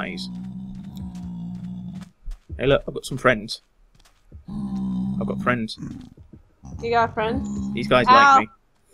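Game creatures grunt and snort nearby.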